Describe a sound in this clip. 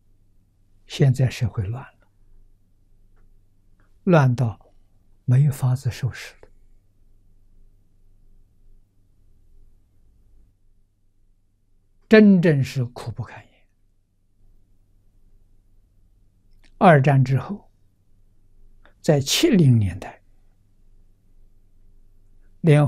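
An elderly man speaks slowly and calmly into a nearby microphone, with long pauses.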